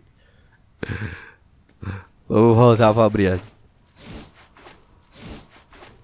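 A young man talks with animation, close to a microphone, and his voice rises into a drawn-out, wavering cry.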